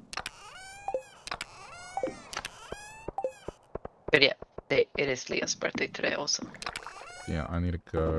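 A short chime sounds as a menu opens.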